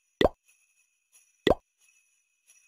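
Game menu buttons click with short taps.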